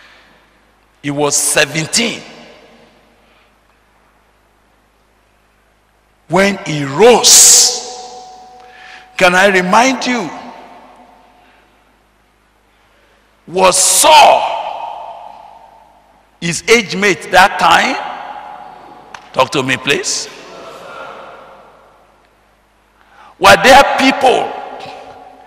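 A man preaches with animation through a microphone, in bursts with pauses, echoing in a large hall.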